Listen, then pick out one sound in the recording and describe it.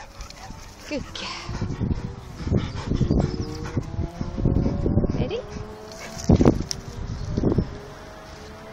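A dog pants and snuffles close by.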